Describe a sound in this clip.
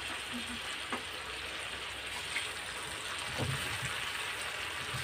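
Water pours into a wok.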